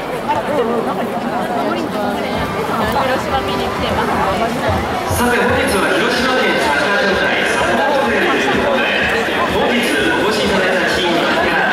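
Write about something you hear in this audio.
A crowd of people chatters and calls out all around.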